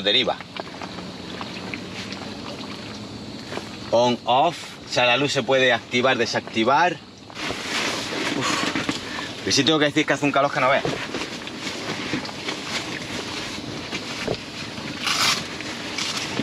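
Fabric rustles and flaps as it is handled.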